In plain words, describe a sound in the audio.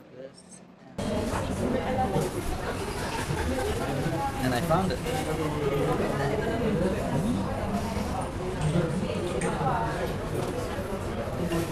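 People chatter in a busy, noisy room.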